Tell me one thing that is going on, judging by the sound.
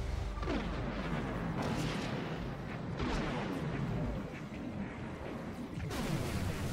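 Laser blasts fire in rapid bursts.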